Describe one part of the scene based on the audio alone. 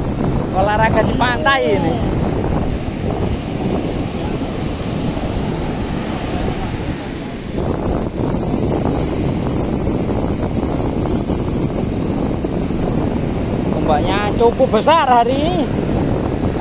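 A man calls out nearby outdoors.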